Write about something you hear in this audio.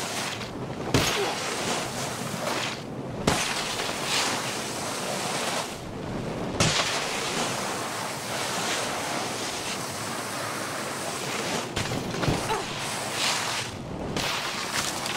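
Skis thud on landing after jumps.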